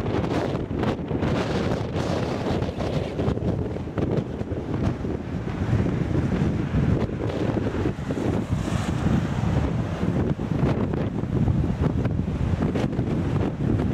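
Strong wind buffets loudly outdoors.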